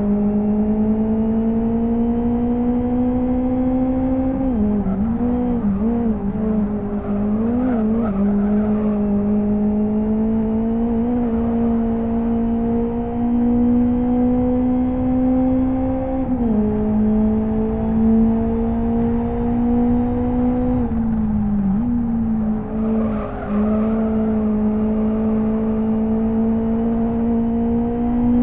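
A racing car engine drones loudly at high revs, its pitch dipping briefly when gears change and then climbing slowly again.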